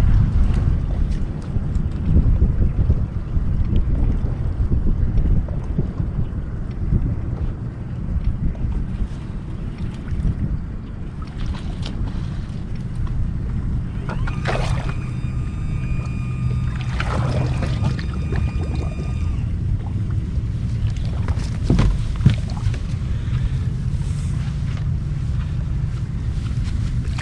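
Water laps against a boat hull.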